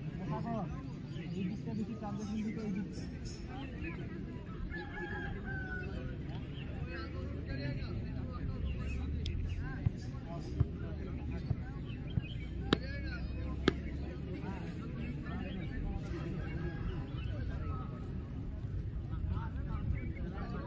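A crowd of men chatters and calls out outdoors.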